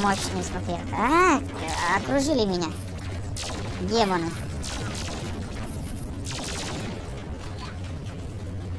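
Cartoon explosions burst and boom repeatedly.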